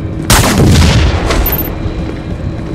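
Gunfire and a loud explosion burst out in a video game.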